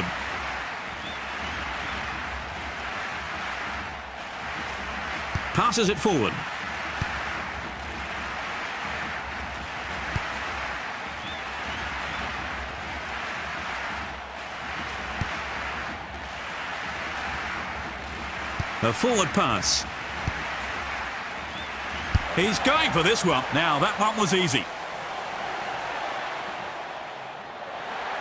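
A large crowd roars steadily in a big open stadium.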